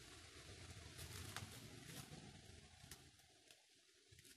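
Clothes pegs click as laundry is hung on a line.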